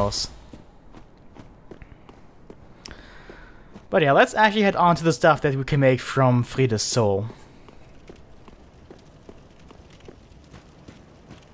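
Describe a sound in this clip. Armoured footsteps tread on stone.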